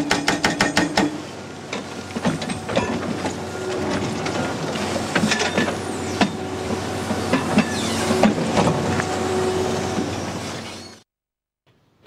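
A hydraulic rock breaker hammers rapidly against stone.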